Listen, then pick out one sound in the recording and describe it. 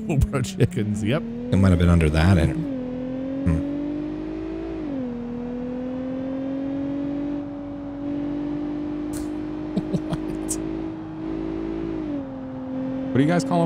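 A car engine hums steadily and revs up as the vehicle speeds along a road.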